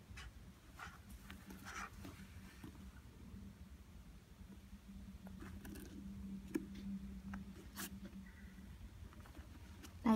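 Fingers rub and tap against a sneaker, with soft scratches and clicks.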